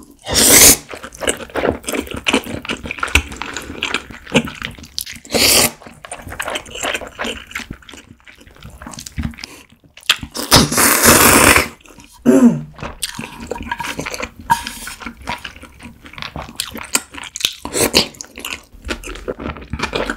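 A young woman chews food wetly, close up.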